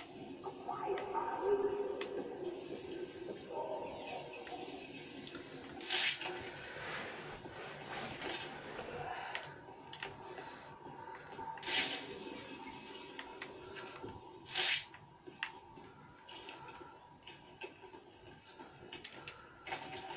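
A game's sound effects play through a television speaker in a room.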